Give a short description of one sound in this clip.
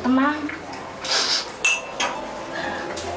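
A young woman sniffles and sobs.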